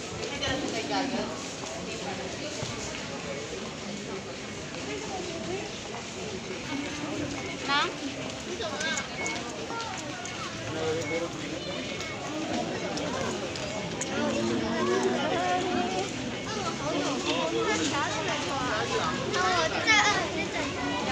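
A crowd of people talks in a large echoing hall.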